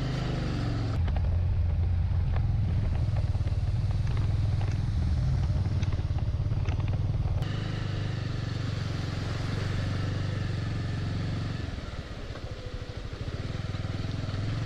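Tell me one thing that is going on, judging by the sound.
Tyres crunch over rough, stony gravel.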